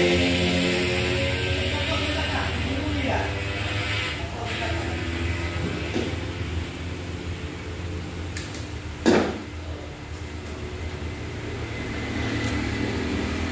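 Metal tools clink and scrape against a motorcycle wheel.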